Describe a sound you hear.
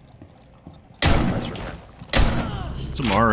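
A rifle fires a few loud shots.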